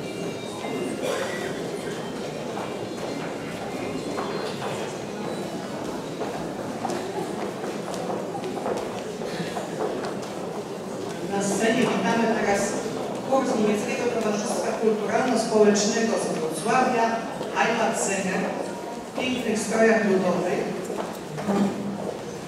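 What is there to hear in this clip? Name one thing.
A middle-aged woman speaks calmly into a microphone on a stage, heard through loudspeakers in a large echoing hall.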